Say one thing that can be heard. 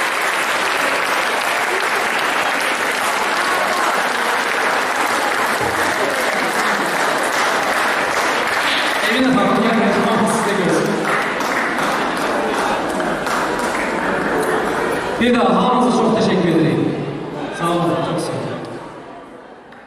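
An audience applauds in a large echoing hall.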